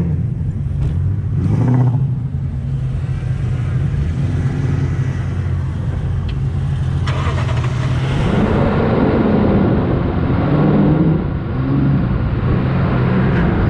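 Vehicle engines rumble and idle nearby.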